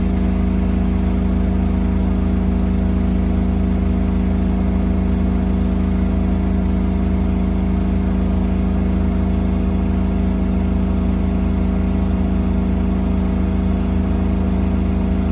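Water sloshes inside a washing machine drum.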